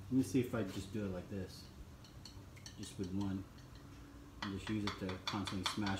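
Chopsticks stir and tap against a ceramic bowl.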